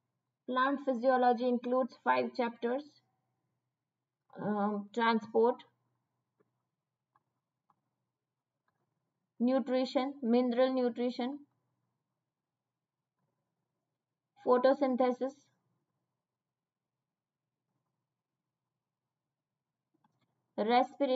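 A woman speaks calmly into a close microphone, in short bursts with pauses.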